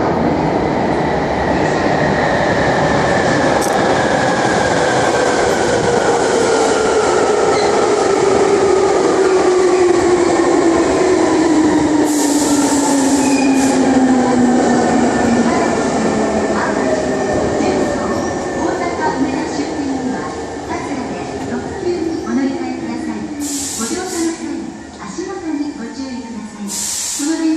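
A train rumbles into an underground station and slows with a falling whine, echoing loudly.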